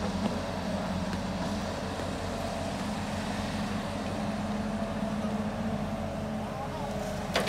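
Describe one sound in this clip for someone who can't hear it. An excavator's diesel engine rumbles steadily.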